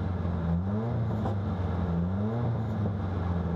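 A car engine revs briefly twice.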